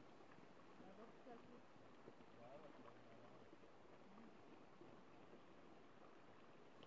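Water trickles gently in a shallow stream.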